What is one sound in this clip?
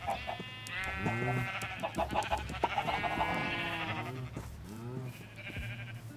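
Sheep bleat.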